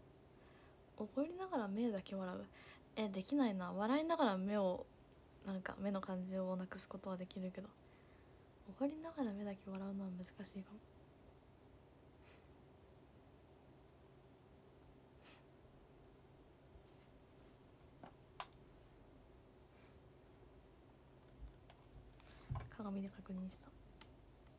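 A young woman speaks softly and animatedly close to a microphone.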